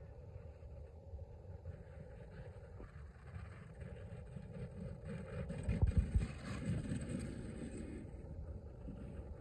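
A plastic sled scrapes and hisses as it slides down over snow.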